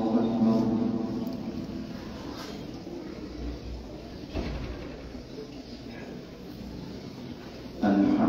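A young man chants in a long, melodic voice through a microphone, echoing in a large room.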